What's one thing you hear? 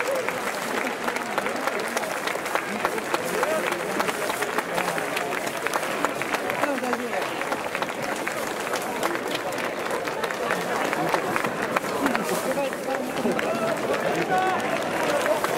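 A stadium crowd cheers and chatters throughout.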